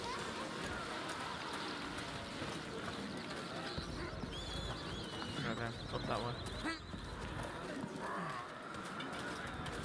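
A crowd murmurs in a busy market outdoors.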